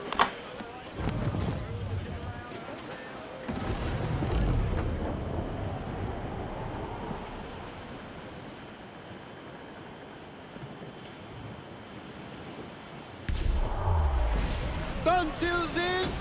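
Water rushes and splashes against the bow of a wooden sailing ship moving through choppy sea.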